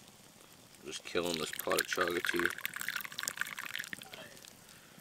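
Water pours from a kettle into a cup.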